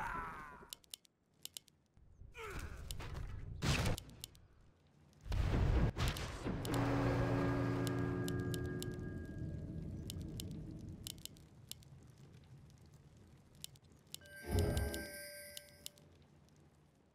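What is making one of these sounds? Short game clicks tick now and then.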